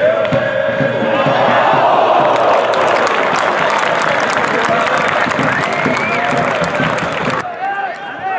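A crowd of spectators cheers loudly.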